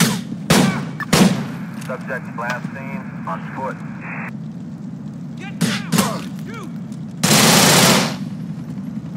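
Gunshots ring out loudly in short bursts.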